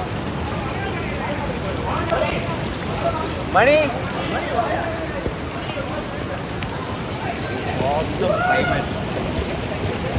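A group of young men shout and cheer in the water.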